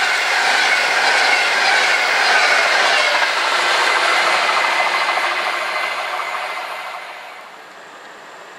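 A fast train roars past at close range and then fades away.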